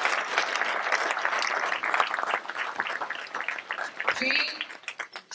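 A crowd applauds and the applause fades.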